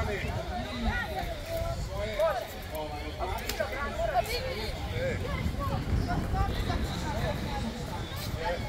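Children chatter and call out to each other outdoors.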